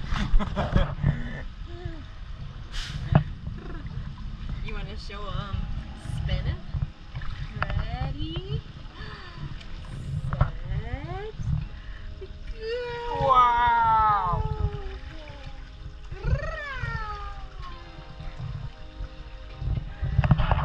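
A young woman talks and coos to a baby up close, with animation.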